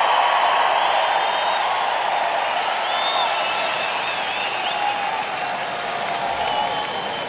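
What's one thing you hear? People in an arena crowd whistle.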